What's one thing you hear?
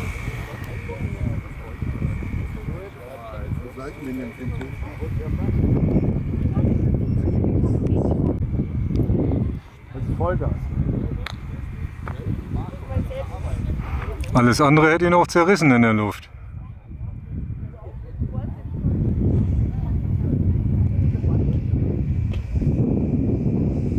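A small model plane engine buzzes overhead, its pitch rising and falling as it passes.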